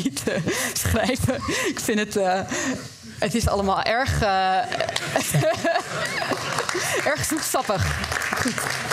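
A woman speaks with animation into a microphone in a large hall.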